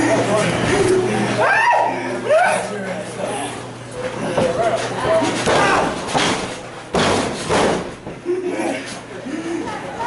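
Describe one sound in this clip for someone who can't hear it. A small crowd shouts and cheers in a room that echoes.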